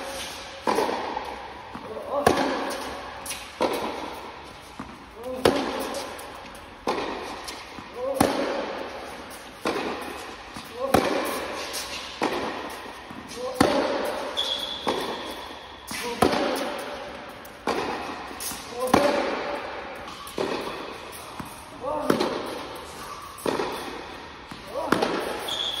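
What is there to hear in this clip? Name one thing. A tennis ball is struck back and forth with rackets in a large echoing hall.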